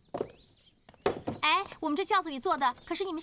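A young woman speaks brightly.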